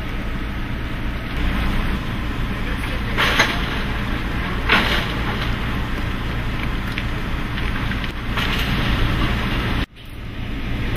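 Wheeled road cases roll over pavement.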